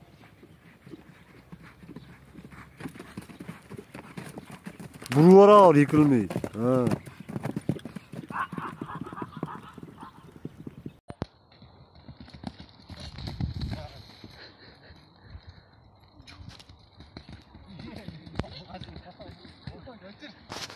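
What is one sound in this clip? A horse's hooves thud on the ground as it gallops close by.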